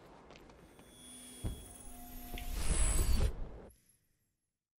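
A loud energy blast whooshes and rumbles.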